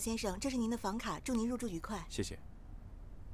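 A young woman speaks politely and clearly, close by.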